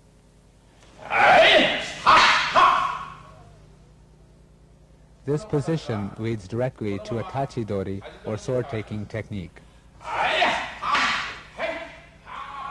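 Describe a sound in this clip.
Two men give sharp, loud shouts as they strike.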